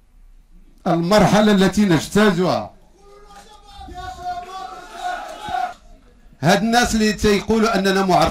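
A middle-aged man speaks forcefully into a microphone over a loudspeaker.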